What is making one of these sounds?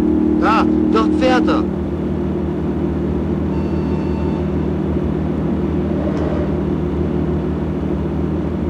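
Tyres roll steadily along the road.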